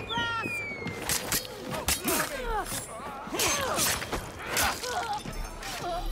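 Punches and blows thud during a scuffle.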